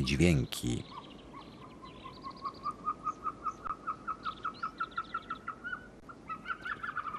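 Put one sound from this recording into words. A bird calls with a rapid run of short pulsing notes.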